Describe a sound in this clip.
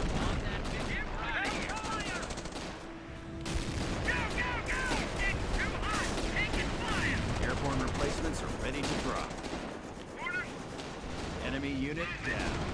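Gunfire and explosions crackle from a battle.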